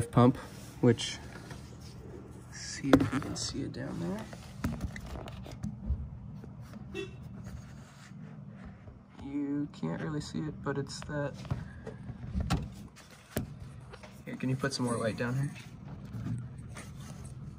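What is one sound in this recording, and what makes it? Hands knock and rattle metal parts under a vehicle's hood.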